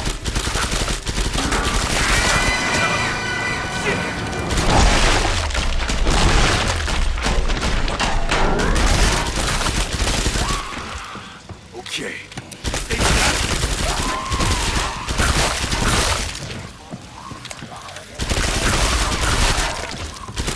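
Creatures screech and snarl.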